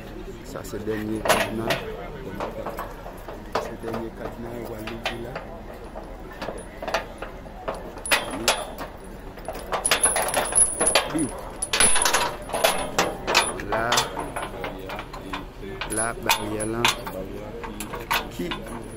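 A metal chain rattles and clinks against a gate.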